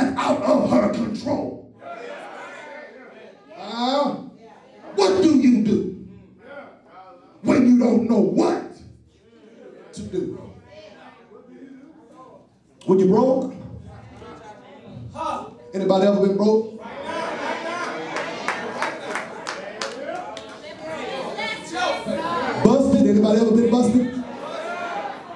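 A man preaches loudly and with animation through a microphone, in a hall with echo.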